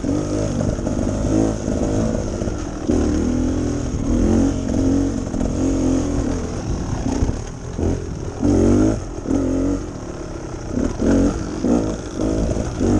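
A dirt bike engine revs and putters up close, rising and falling.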